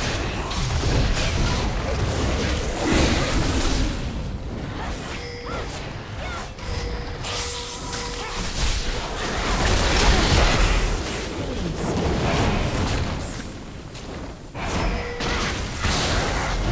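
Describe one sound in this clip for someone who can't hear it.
Game sound effects of a fight crackle and clash.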